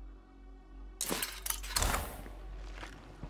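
Footsteps crunch on the ground.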